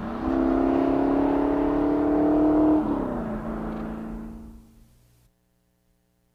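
A car engine roars loudly as a car speeds past, its pitch dropping as it goes by and then fading away.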